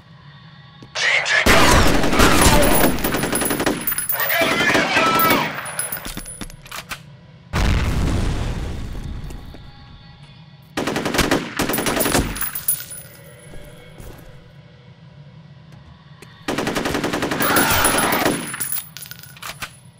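A rifle fires loud bursts of gunshots that echo off hard walls.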